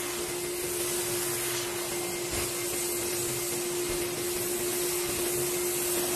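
A vacuum cleaner hums steadily as it sucks across a rug.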